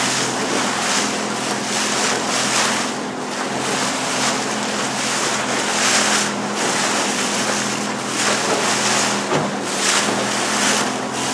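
Choppy sea water splashes and rushes.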